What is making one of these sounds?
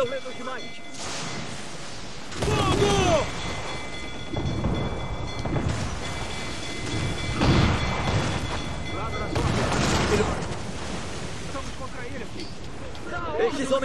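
Stormy waves crash against a ship's hull.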